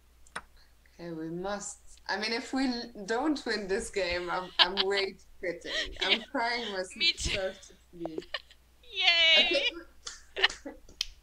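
A young woman speaks and exclaims with animation through a microphone.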